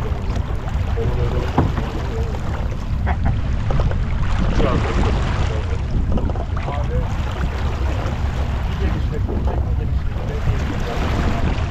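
Adult men talk casually nearby.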